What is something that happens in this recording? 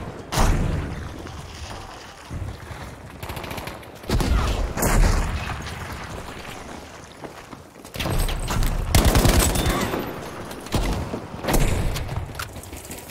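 Rifle shots crack and boom in loud bursts.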